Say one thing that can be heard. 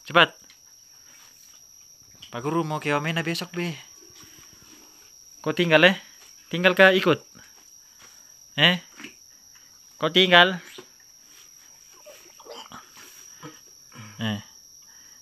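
A young child talks close by in short bursts.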